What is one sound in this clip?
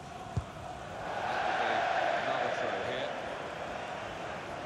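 A crowd cheers and claps in a loud swell.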